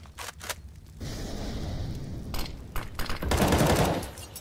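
A smoke grenade hisses loudly and steadily.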